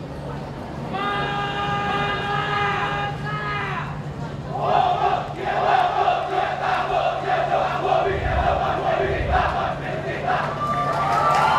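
A man speaks loudly to a group outdoors.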